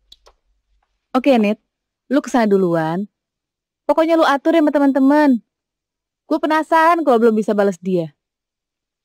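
A young woman talks into a phone.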